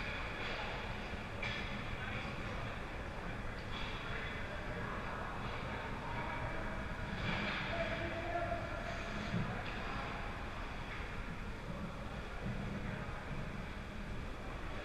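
Skate blades scrape and hiss across the ice.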